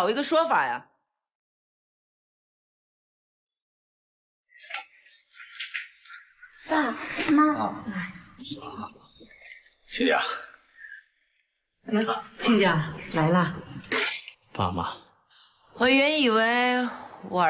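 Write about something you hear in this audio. A middle-aged woman speaks close by.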